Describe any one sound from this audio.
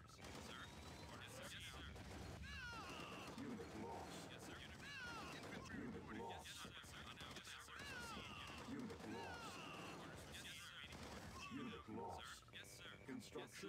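Gunfire and small explosions crackle in a battle.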